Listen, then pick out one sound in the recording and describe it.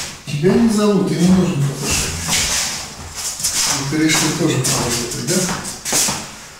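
A middle-aged man talks calmly nearby in a small room.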